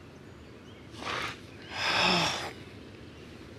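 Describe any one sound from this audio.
A man lets out a long, heavy sigh.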